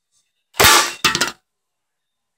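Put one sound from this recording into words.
A toy foam blaster fires with a sharp pop.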